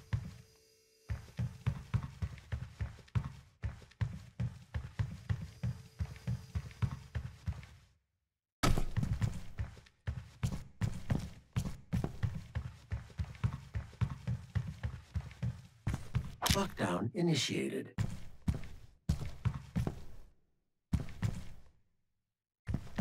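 Heavy footsteps thud at a steady pace.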